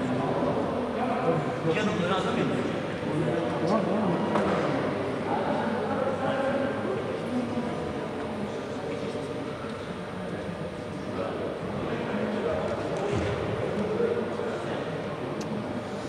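A man talks to a group nearby, his voice echoing in a large hall.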